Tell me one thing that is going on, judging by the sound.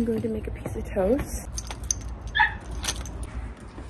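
Keys jingle in a lock.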